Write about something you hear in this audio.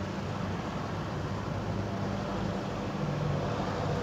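A truck engine rumbles as it drives past nearby.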